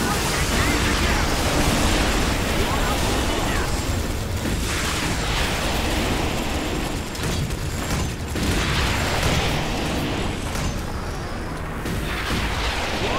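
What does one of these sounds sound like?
Gunfire and explosions crackle and boom continuously in a game battle.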